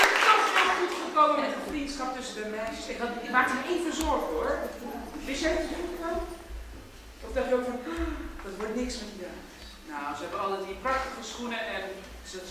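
A man speaks with animation to an audience in a large hall.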